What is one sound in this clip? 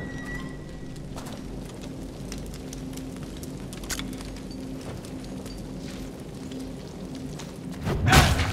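Footsteps shuffle on a stone floor.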